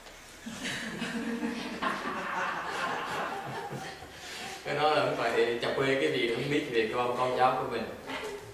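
A middle-aged man speaks calmly and warmly into a nearby microphone.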